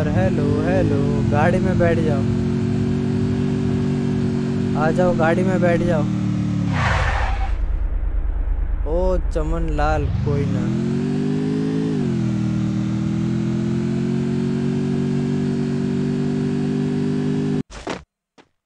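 A motorbike engine drones steadily, dropping and rising in pitch.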